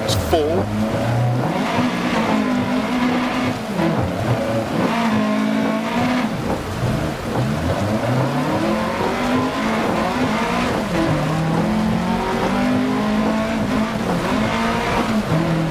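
Gravel rattles and sprays under tyres.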